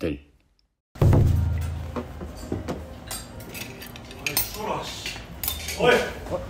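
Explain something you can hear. Young men chat and laugh nearby.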